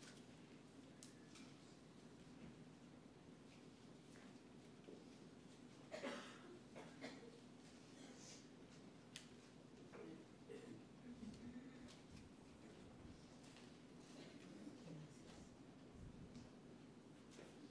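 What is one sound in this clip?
A congregation shuffles and murmurs softly in a large echoing hall.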